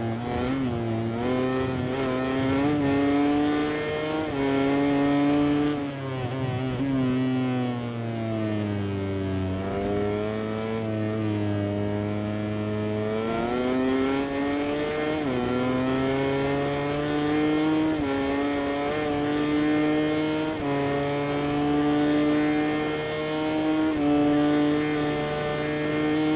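A motorcycle engine screams at high revs, shifting gears and dropping in pitch through the corners before rising again.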